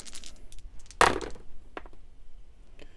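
Dice rattle and clatter onto a hard tray.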